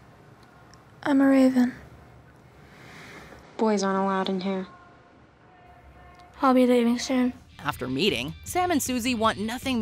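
A young woman speaks calmly up close.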